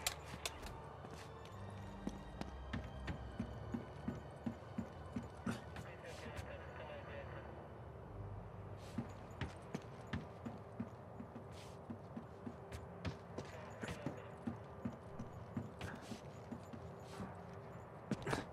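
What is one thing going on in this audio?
Footsteps run quickly over a hard surface.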